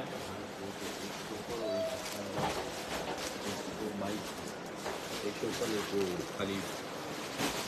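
Men talk loudly and excitedly close by.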